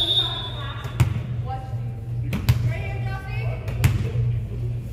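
A volleyball bounces sharply on a hard floor.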